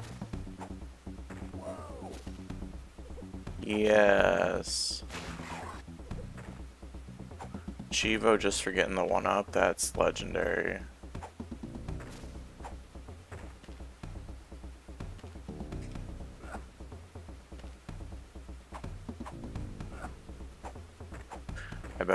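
Upbeat video game music plays steadily.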